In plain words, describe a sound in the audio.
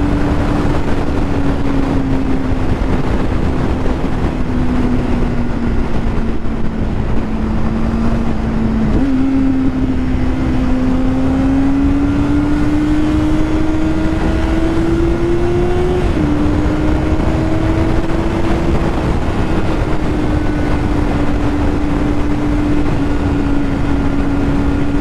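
A motorcycle engine hums steadily, its pitch rising and dropping with gear changes.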